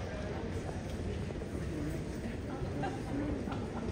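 A suitcase rolls on wheels across a hard floor.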